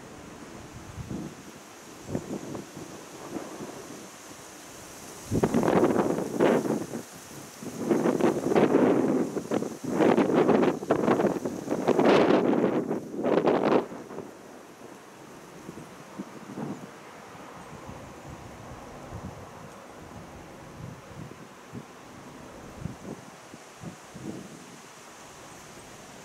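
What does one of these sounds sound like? Wind rustles through the leaves of trees outdoors.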